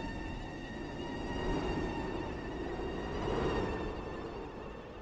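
An electric train's motor whines as the train pulls away.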